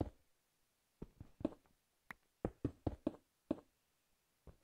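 A pickaxe chips at stone with sharp knocks.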